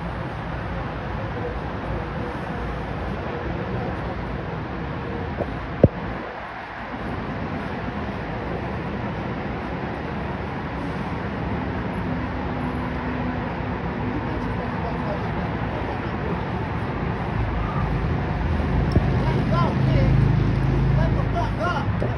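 Young men shout nearby outdoors.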